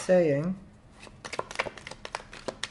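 Playing cards are shuffled with quick soft flicks.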